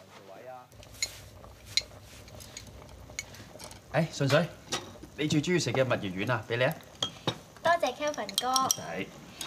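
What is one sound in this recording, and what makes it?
Chopsticks clink against bowls.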